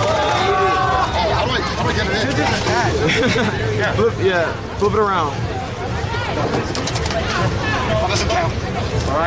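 A crowd chatters all around in a large, busy hall.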